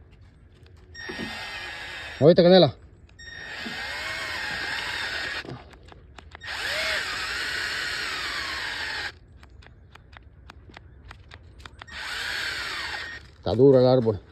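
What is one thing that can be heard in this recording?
A cordless drill whirs in short bursts as it bores into wood.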